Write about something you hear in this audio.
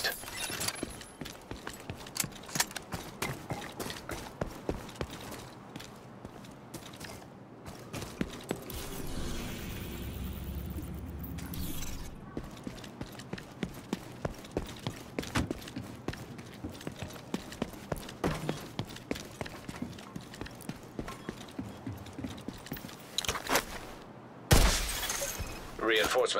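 Boots run on pavement.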